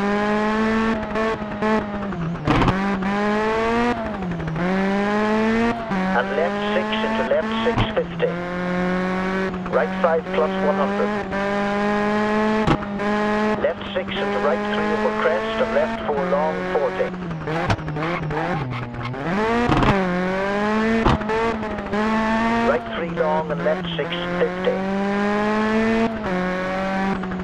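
A rally car engine revs hard and climbs through the gears.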